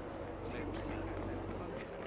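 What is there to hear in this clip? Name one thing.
Footsteps thud down stone steps.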